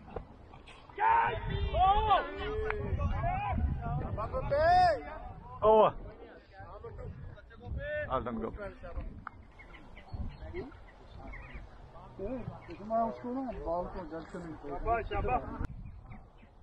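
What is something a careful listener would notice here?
Men shout and call out loudly across an open field.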